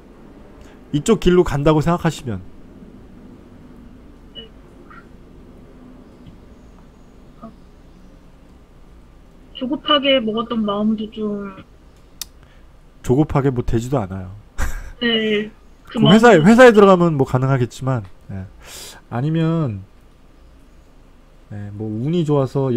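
A middle-aged man speaks calmly over an online call, close to a microphone.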